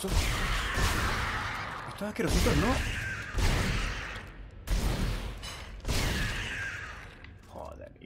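Gunshots blast loudly, one after another, with a ringing tail.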